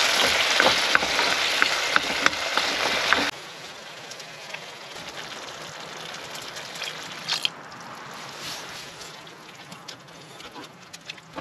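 A wooden spoon scrapes and taps against a pan.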